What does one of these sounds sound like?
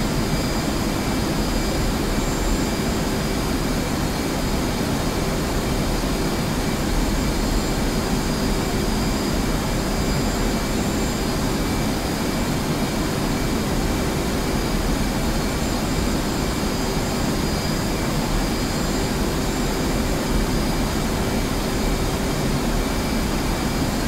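A jet engine roars steadily inside a cockpit.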